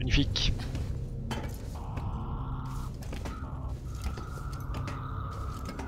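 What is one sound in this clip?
Hands and boots clank on the rungs of a metal ladder during a climb.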